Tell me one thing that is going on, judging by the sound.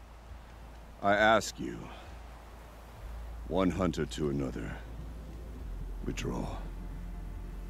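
A middle-aged man speaks calmly and gravely.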